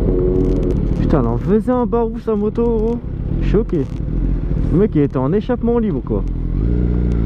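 A motorcycle engine revs up and down in sharp bursts.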